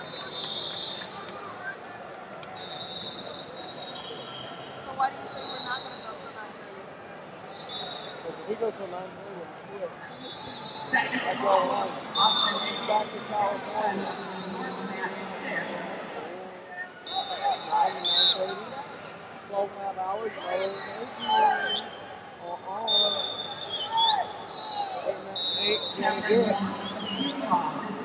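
A crowd murmurs and chatters in a large echoing arena.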